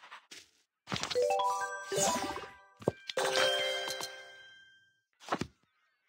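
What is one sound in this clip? Bright game chimes ring out as a task is completed.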